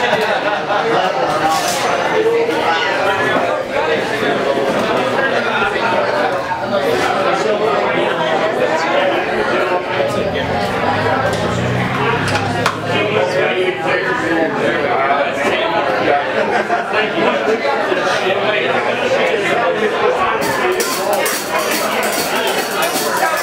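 A drummer plays a drum kit.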